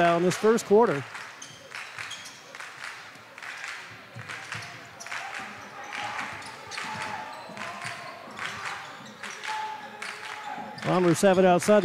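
A basketball bounces.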